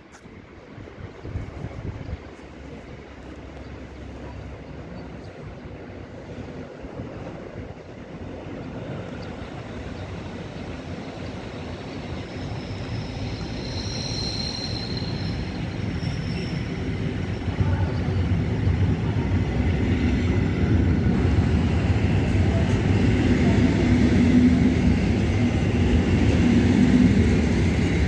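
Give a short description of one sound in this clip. An electric train approaches and rolls past close by, growing louder.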